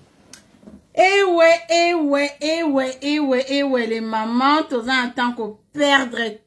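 A woman sings loudly and close up.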